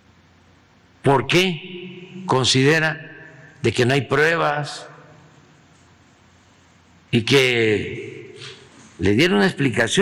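An elderly man speaks slowly and deliberately into a microphone, pausing between phrases.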